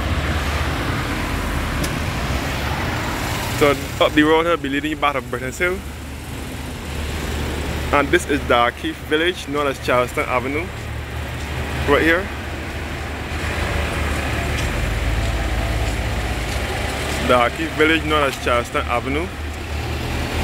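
Cars drive past close by on a street.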